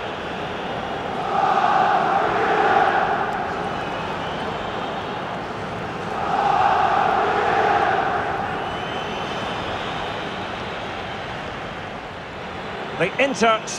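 A large stadium crowd roars and chants steadily, swelling and fading in waves.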